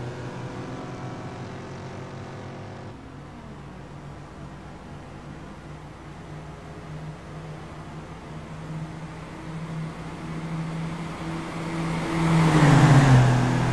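Racing car engines drone steadily.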